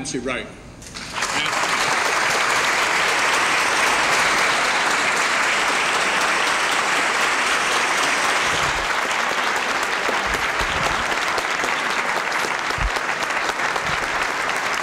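A large audience claps and cheers loudly in a big hall.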